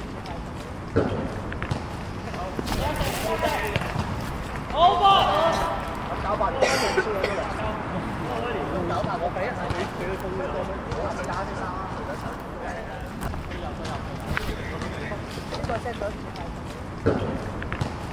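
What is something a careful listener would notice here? A ball is kicked hard on a hard court.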